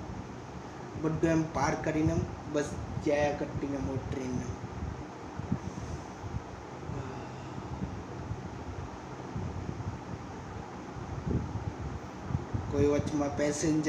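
A young man speaks close by, calmly, in short bursts.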